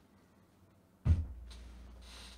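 A plastic bottle thumps down on a table.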